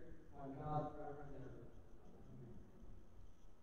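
A man's voice chants briefly in a large echoing hall.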